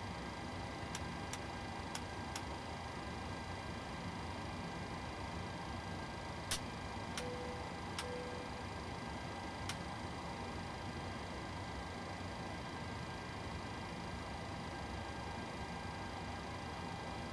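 A steady electrical hum drones throughout.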